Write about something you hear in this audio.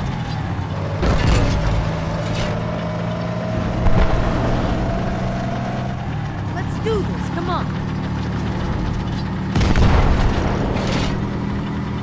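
Loud blasts boom now and then.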